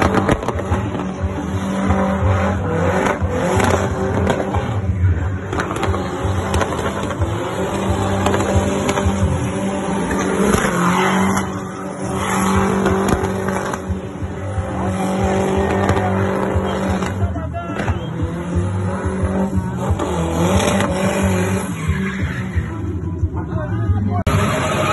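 Car tyres squeal on asphalt in a burnout.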